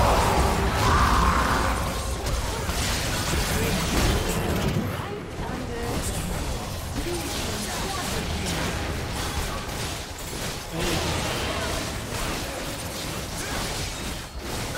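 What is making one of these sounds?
Magic blasts and weapon hits clash rapidly in a busy fight.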